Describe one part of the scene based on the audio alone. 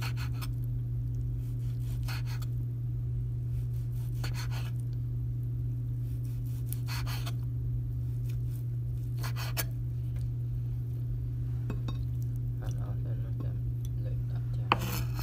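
A knife knocks on a wooden cutting board now and then.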